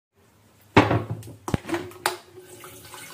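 A kettle lid clicks open.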